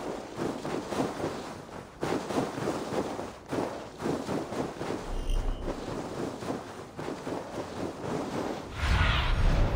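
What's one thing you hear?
Footsteps crunch quickly through deep snow.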